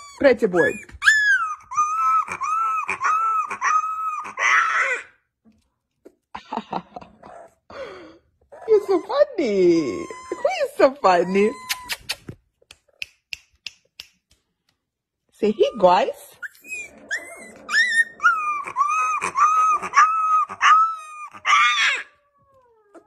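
A husky puppy howls and yowls in high, wavering cries.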